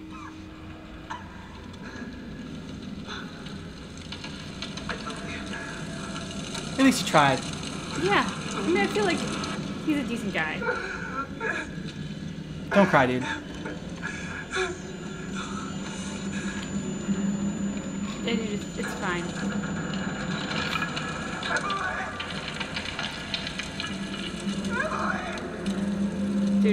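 A young woman talks and reacts close to a microphone.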